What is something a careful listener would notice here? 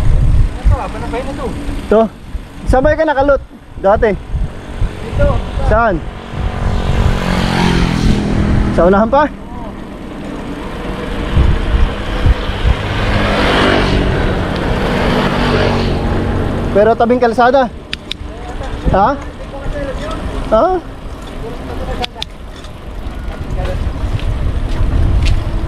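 Bicycle tyres roll over a paved road.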